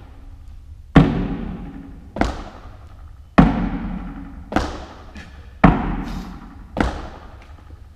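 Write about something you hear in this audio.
Feet land with loud thuds on a wooden box, echoing in a large hall.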